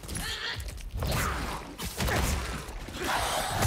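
Heavy blows land with deep thuds.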